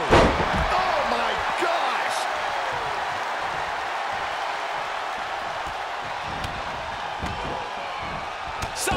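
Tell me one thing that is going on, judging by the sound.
A body thuds hard onto a mat.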